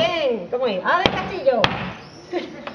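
A metal door knocker bangs against a wooden door.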